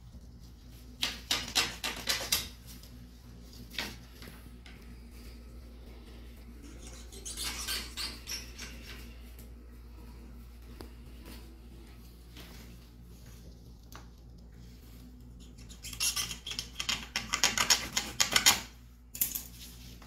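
Plastic sheeting rustles and crinkles as it is handled.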